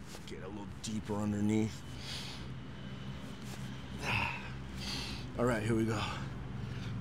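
A man grunts with effort.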